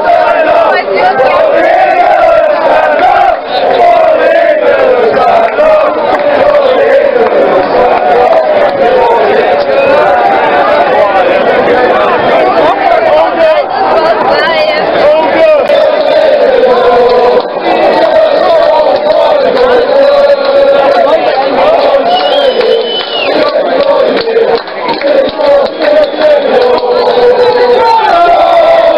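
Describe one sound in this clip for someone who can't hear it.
A large crowd of young men and women sings and chants loudly outdoors.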